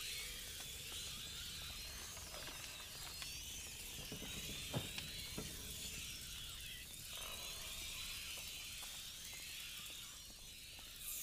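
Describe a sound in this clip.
A fire crackles and hisses.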